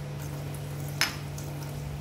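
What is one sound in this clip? A glass clinks against another glass.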